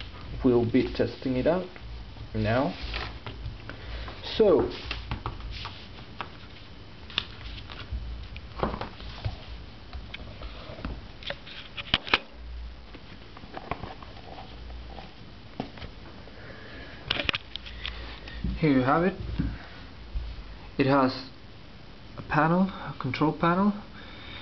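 A tablet in a case knocks and rustles as hands handle it.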